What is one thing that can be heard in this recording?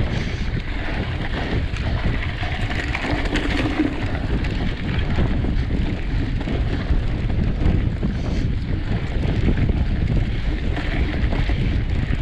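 Bicycle tyres roll and rattle over a bumpy dirt trail.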